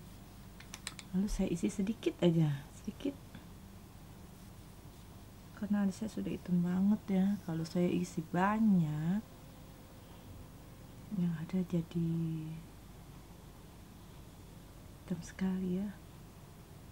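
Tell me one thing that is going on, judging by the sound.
A young woman talks calmly close by, in short bursts.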